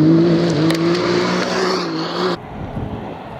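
An off-road buggy engine roars loudly as it speeds past close by.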